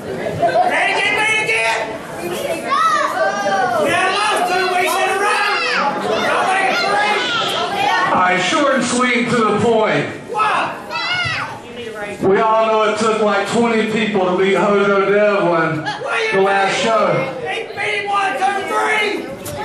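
A man shouts forcefully into a microphone, heard through loudspeakers in an echoing hall.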